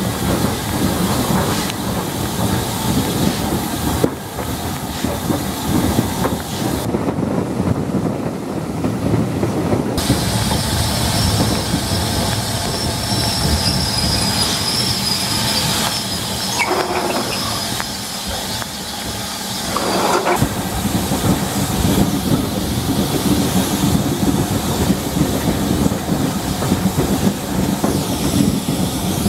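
A steam train rumbles and clatters steadily along the rails.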